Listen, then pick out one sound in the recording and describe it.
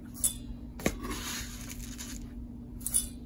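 Dry oats pour into a metal bowl with a soft rustle.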